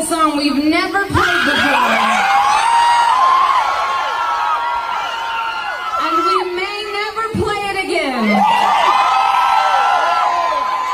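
A woman sings loudly through a microphone and loudspeakers.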